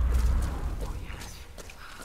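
Footsteps run on dirt ground.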